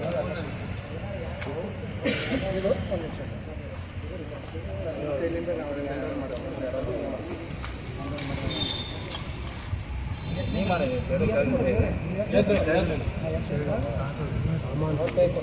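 Several men talk over one another nearby, outdoors.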